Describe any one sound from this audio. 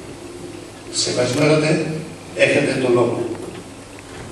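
A man speaks briefly into a microphone over loudspeakers in a large hall.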